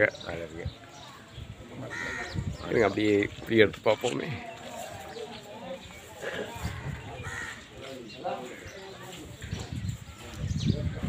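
A middle-aged man speaks with animation close to the microphone.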